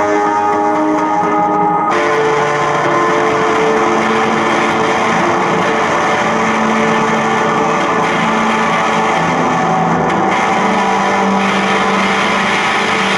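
An accordion plays sustained chords.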